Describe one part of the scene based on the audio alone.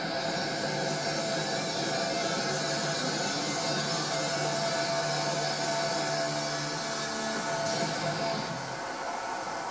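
Band music plays through a television speaker.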